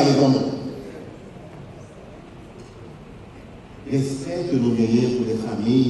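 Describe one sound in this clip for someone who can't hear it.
A man preaches with animation into a microphone, heard through loudspeakers in an echoing hall.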